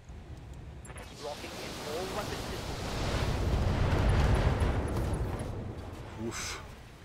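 A large explosion booms and rumbles deeply.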